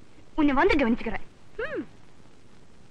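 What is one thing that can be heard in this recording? A young woman speaks with emotion nearby.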